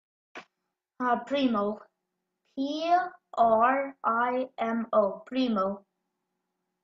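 A young boy speaks calmly over an online call.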